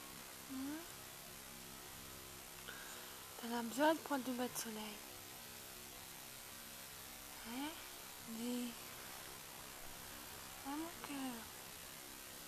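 A cat meows softly close by, again and again.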